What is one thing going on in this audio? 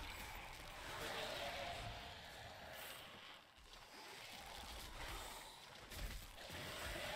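Fantasy game spell blasts and combat hits crash in quick succession.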